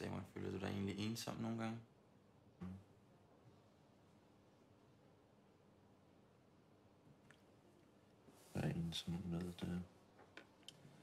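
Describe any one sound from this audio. A young man speaks quietly, asking a question.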